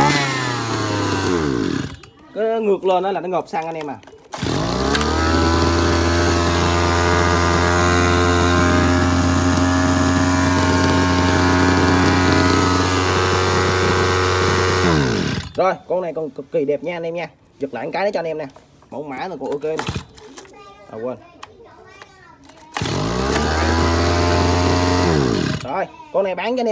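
A small petrol engine runs with a steady buzzing drone, then winds down and stops.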